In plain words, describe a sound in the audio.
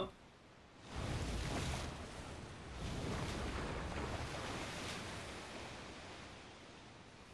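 Rushing water surges and crashes loudly.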